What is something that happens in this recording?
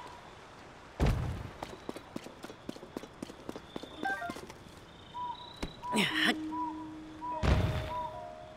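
A heavy rock thuds onto the ground.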